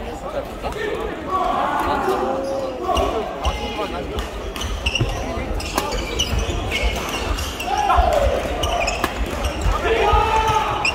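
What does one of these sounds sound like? Several players call out and chatter in the background.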